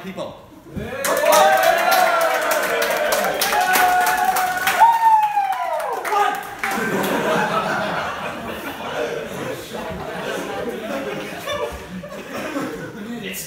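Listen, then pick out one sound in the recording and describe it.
A crowd of people cheers and shouts loudly indoors.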